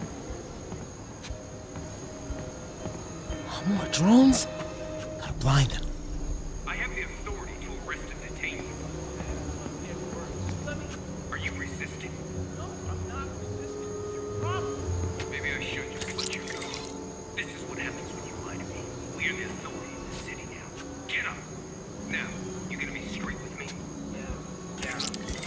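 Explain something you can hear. A small drone hums steadily overhead.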